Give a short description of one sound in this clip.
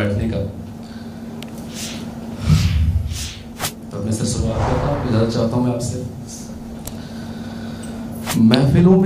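A young man speaks with feeling into a microphone, reciting.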